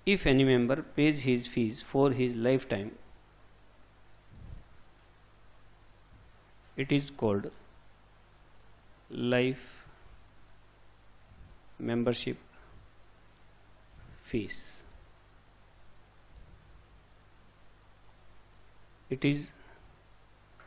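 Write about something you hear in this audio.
A man lectures calmly through a microphone, in short bursts between pauses.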